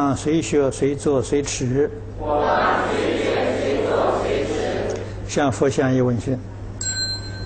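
A group of men chant slowly in unison.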